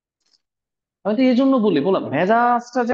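A man speaks calmly and explains, close to a microphone.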